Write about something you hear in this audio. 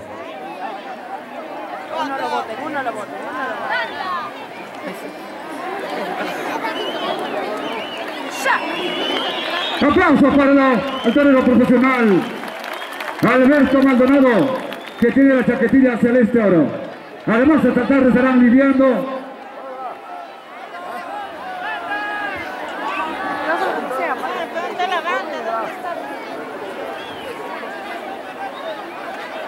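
A large crowd murmurs and calls out in an open arena.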